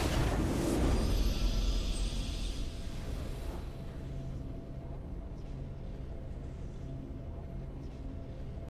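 Triumphant victory music swells and then plays softly.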